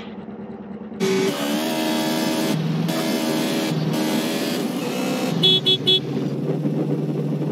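A motorcycle engine revs loudly and roars as it speeds up.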